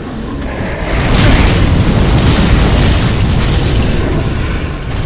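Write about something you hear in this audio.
Fire roars in a burst of flame.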